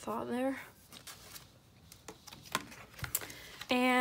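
Paper rustles as a sticker sheet is handled.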